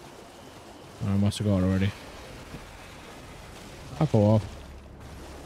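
A man speaks briefly and with animation, close to a microphone.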